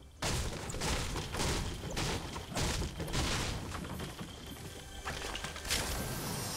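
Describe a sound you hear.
A pickaxe strikes a wall with repeated sharp knocks.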